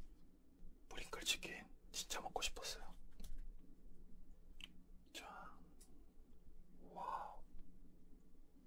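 A young man speaks softly and close to a microphone.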